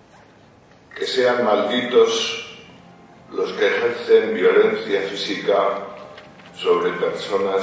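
An elderly man speaks slowly and expressively into a microphone in a large echoing hall.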